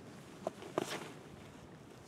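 A disc golfer's shoes scuff on a concrete tee pad during a throw.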